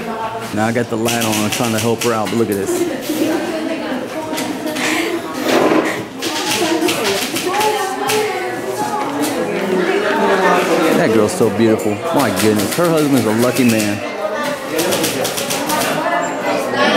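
Keys clatter in quick bursts of typing.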